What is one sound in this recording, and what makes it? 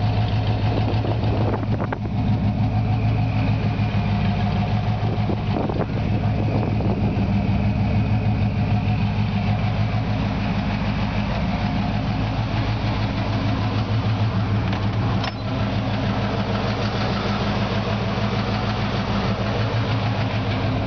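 A car engine idles with a deep, steady rumble through the exhaust.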